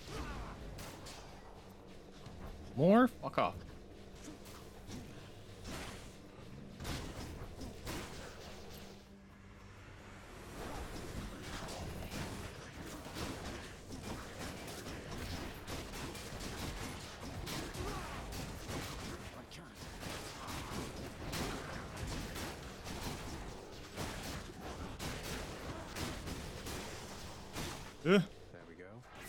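Game combat effects clash and burst with magical whooshes.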